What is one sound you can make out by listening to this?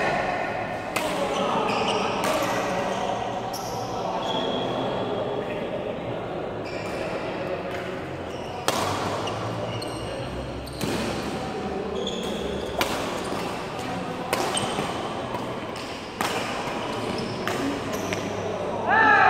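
Rackets strike a shuttlecock with sharp smacks in an echoing hall.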